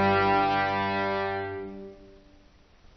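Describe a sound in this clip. A small string ensemble holds a final chord that dies away.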